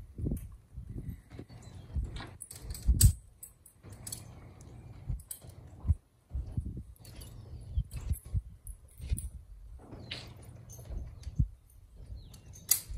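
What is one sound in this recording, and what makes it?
Harness chains clink and jingle as mules shift in place.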